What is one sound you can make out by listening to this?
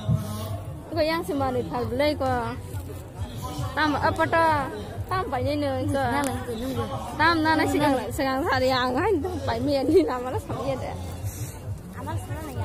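A woman speaks loudly and animatedly close by.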